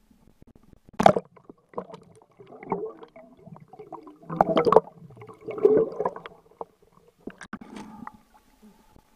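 Air bubbles gurgle and rumble underwater from a diver's regulator.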